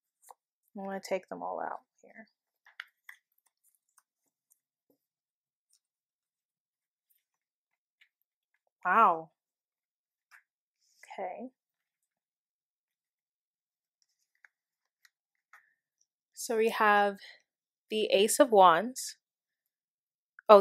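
Playing cards are laid down softly on a cloth.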